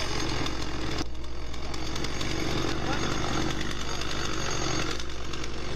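A chainsaw cuts into a log with a steady buzzing roar.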